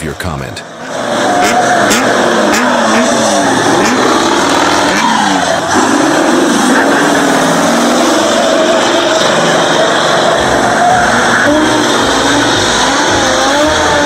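Truck tyres screech as they skid on asphalt.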